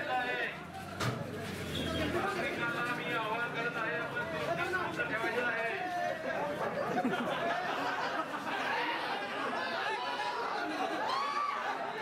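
Several men shout and yell over one another in a scuffle.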